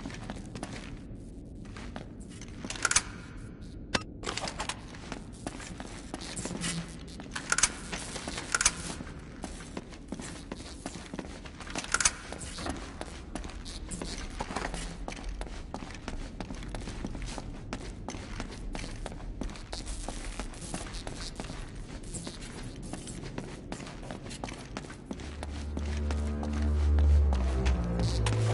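Footsteps crunch over a gritty floor.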